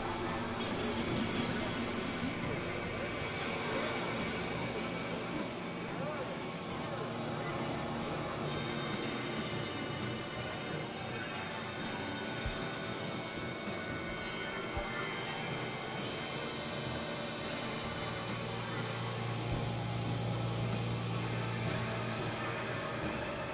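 Electronic keyboard music plays steadily with a low droning bass.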